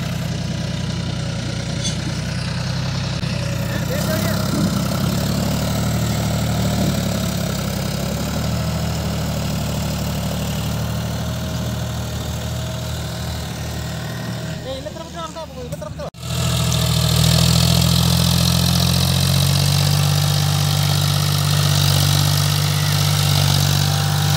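A tractor engine chugs loudly and strains under a heavy load.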